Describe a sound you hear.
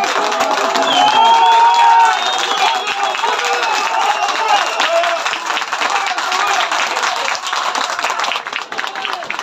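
Spectators clap their hands rapidly.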